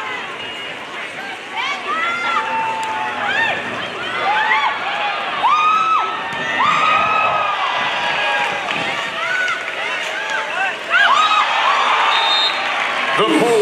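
A volleyball is struck hard several times.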